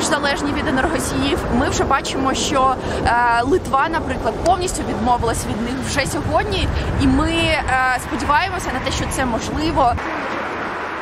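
A young woman speaks calmly and clearly, close to a microphone.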